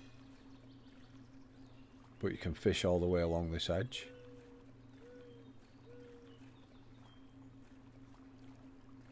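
A paddle dips and splashes in calm water.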